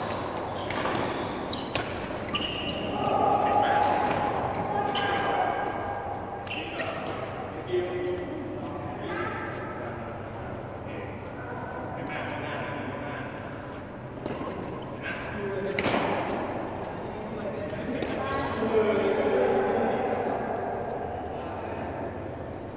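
Young people talk and call out in the distance.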